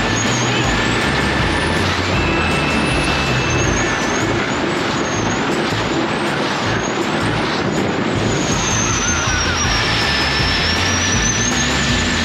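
A man shouts and yells with excitement close by.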